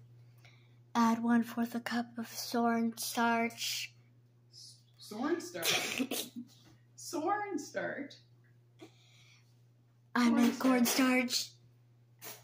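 A young girl talks loudly and playfully close by.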